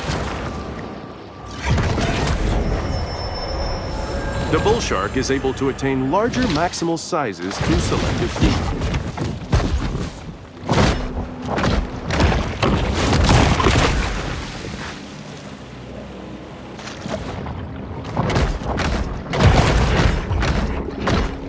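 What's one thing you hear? Water bubbles and rushes underwater.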